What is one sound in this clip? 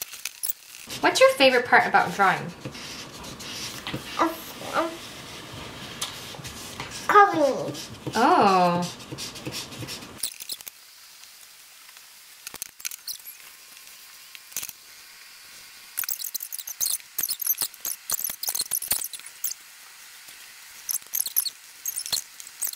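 Felt-tip markers scratch and squeak on paper.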